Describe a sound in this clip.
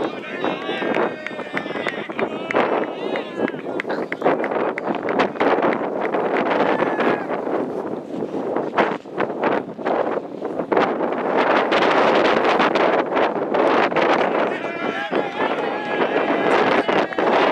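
Men call out to each other across an open field.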